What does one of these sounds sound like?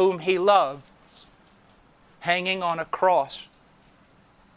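A man speaks with emphasis through a microphone, in short bursts.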